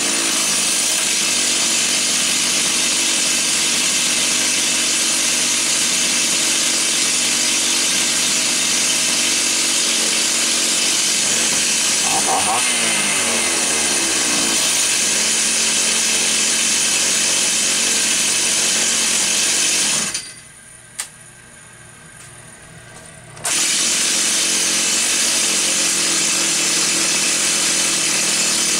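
A chainsaw engine runs loudly and steadily nearby.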